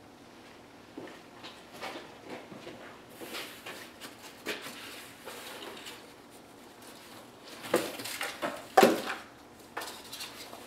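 Thin boards clatter and knock as a man handles them.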